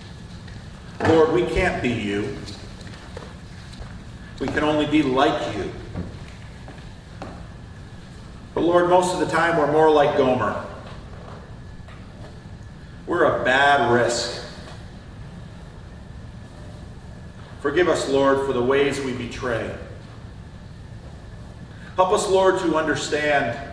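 An older man speaks slowly and calmly in short phrases with long pauses, in a large room with a slight echo.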